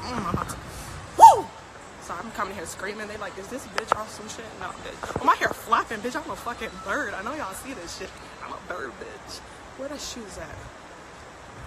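A young woman talks animatedly and close to a phone's microphone.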